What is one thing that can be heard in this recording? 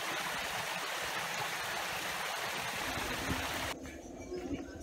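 A shallow stream rushes and burbles over rocks.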